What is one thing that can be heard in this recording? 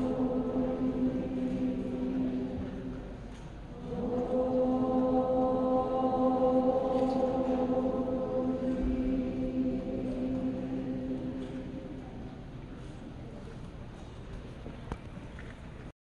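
Music plays loudly through loudspeakers in a large echoing hall.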